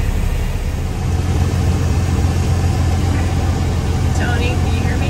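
A tractor engine drones loudly close by.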